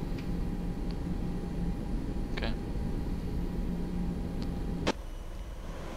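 A jet engine rumbles steadily.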